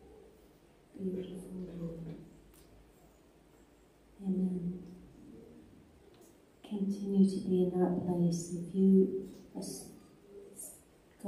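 A woman speaks slowly and with feeling into a microphone, heard through loudspeakers in a large room.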